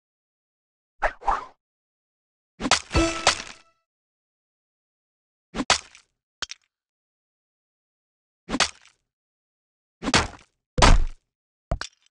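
Game sound effects chime and pop in short bursts as tiles match and clear.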